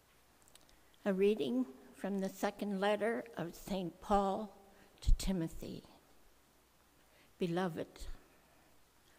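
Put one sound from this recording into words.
An elderly woman reads out calmly into a microphone.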